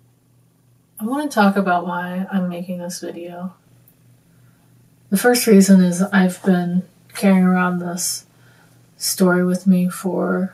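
A young woman speaks calmly and haltingly, close by.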